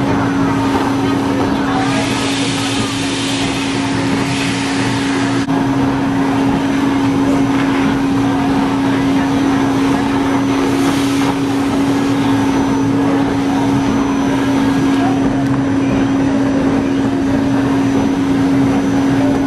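A stuffing machine whirs as it blows filling into a soft toy.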